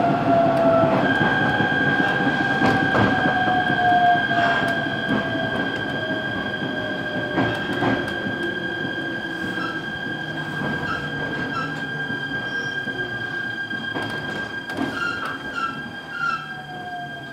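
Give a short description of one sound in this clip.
An electric train motor whines with a steady high tone.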